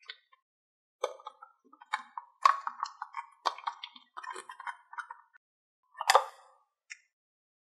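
Thick slime squelches and plops out of a jar.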